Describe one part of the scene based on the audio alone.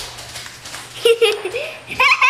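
A young girl squeals and laughs loudly close by.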